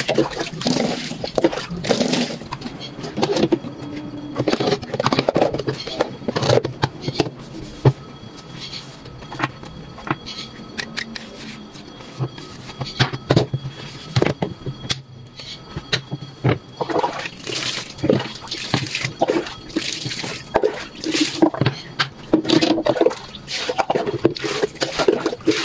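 Plastic parts knock and clatter as they are handled.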